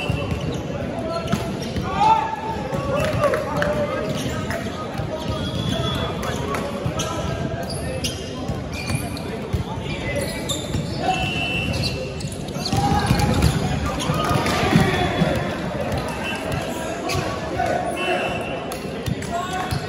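Men shout and call out during a volleyball game in a large echoing hall.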